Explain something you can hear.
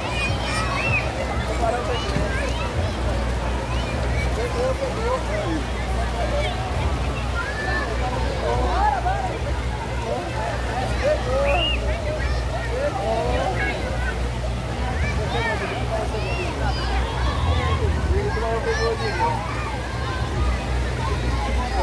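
Water spouts splash steadily into a pool.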